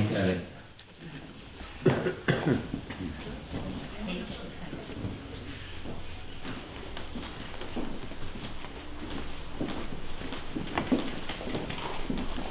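A crowd of people chatter quietly.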